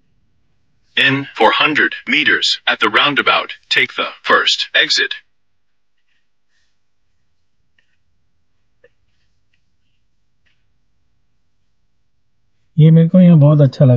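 A middle-aged man speaks calmly and close by.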